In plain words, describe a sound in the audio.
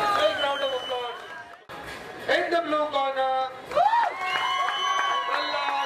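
A crowd cheers in a large hall.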